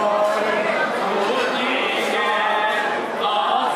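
A young man sings along loudly close by.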